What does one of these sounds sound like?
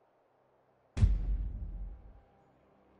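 A sudden heavy crash booms and rumbles briefly.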